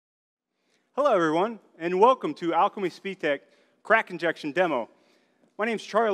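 A middle-aged man speaks clearly and calmly, nearby.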